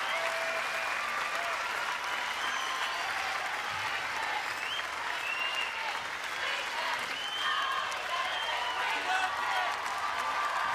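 A crowd of men and women cheers and calls out.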